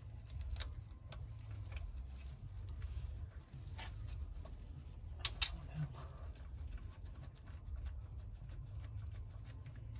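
Gloved hands click and rattle engine parts.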